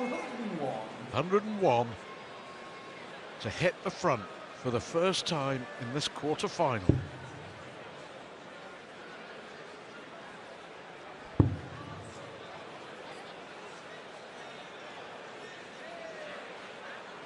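A large crowd murmurs in a big hall.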